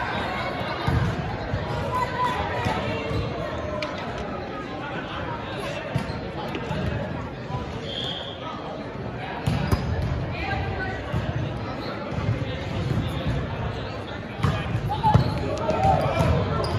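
A volleyball is bumped with a dull thud.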